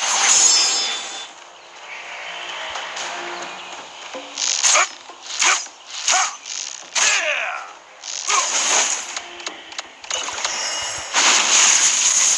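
Magic spells whoosh and burst again and again during a battle.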